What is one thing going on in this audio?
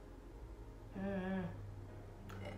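A young woman hums briefly, close by.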